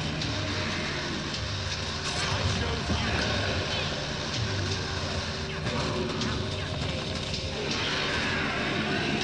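Spell blasts and combat effects crackle and boom in a fast game battle.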